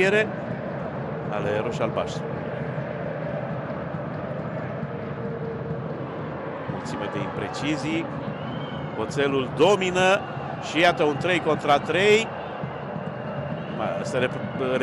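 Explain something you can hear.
A stadium crowd murmurs and chants steadily in a large open space.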